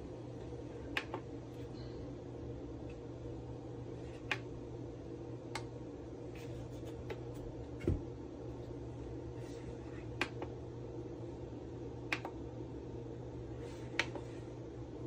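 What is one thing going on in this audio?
Buttons on a power station click as a finger presses them.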